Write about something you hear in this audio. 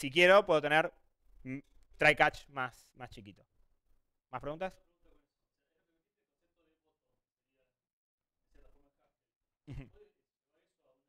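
A man speaks to an audience, pausing often.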